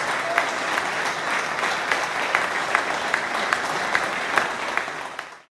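A large audience applauds in a hall, clapping in a steady rhythm.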